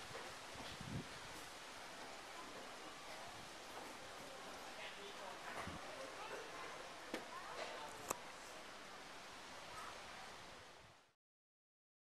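A light wind rustles leaves in the trees outdoors.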